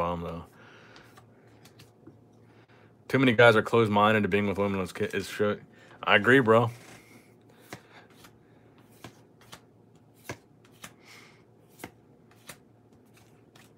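Trading cards shuffle and slide softly between hands.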